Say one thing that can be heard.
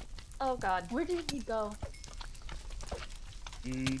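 Slimes squish as they bounce.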